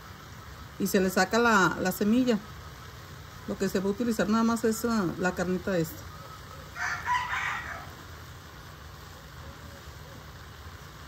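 A knife scrapes the skin off a roasted chili.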